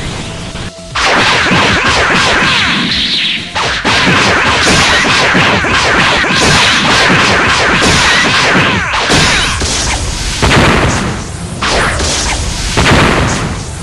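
Rapid punches and kicks land in a fast flurry of hits.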